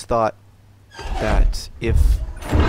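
A metal lever clanks and grinds as it is pulled down.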